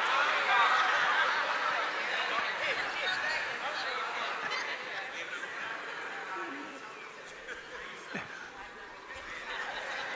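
An elderly man speaks with feeling into a microphone, heard through loudspeakers in a large echoing hall.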